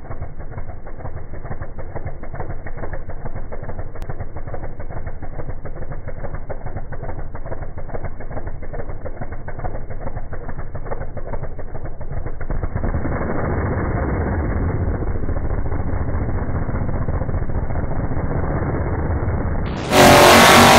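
A drag car engine idles with a loud, lumpy rumble.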